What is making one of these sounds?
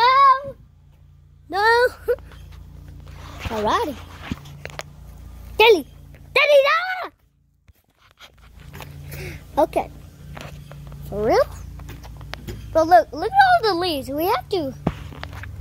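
A boy talks excitedly, close by.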